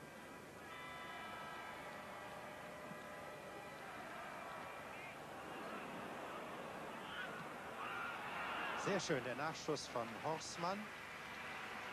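A large stadium crowd murmurs steadily outdoors.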